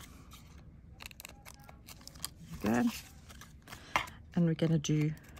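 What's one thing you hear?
Stiff card rustles and taps as hands handle it.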